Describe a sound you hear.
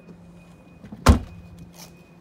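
A car's hatch slams shut with a loud thud.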